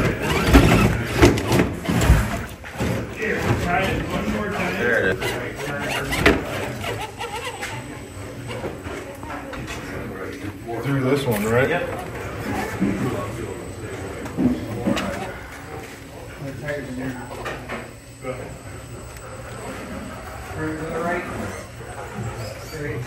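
A small electric motor whirs as a toy truck crawls.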